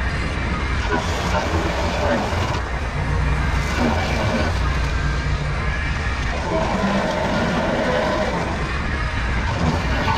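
Mower blades chop through brush and dry stalks with crackling.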